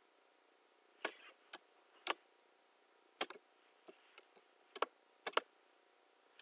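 Wood blocks knock as they are chopped in a video game.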